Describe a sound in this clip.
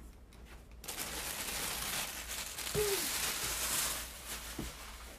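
Hair brushes close against a microphone with a loud rustling.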